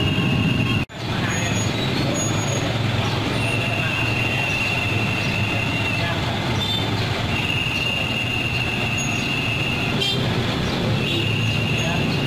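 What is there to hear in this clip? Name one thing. A truck engine hums steadily nearby.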